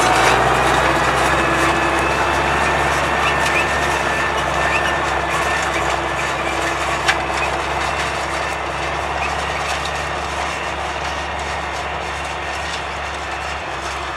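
A harrow rattles and scrapes through the soil.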